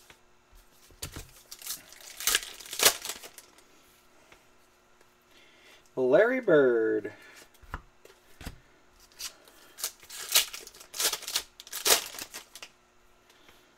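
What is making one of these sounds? A foil pack crinkles and tears open.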